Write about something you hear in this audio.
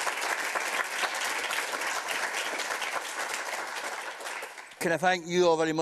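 An audience claps steadily.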